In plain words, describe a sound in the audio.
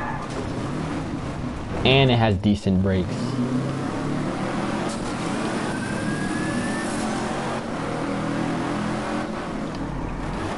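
A car engine hums and revs steadily as the car drives.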